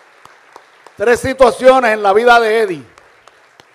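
A man speaks through a microphone and loudspeakers in a large echoing hall.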